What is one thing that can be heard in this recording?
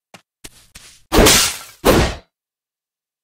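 A quick magical whoosh sweeps past twice.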